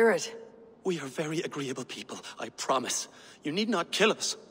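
A woman pleads anxiously.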